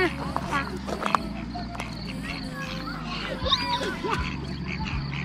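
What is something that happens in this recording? A young child babbles excitedly nearby.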